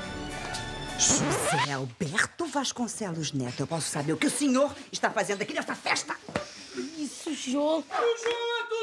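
A woman speaks up close with animation.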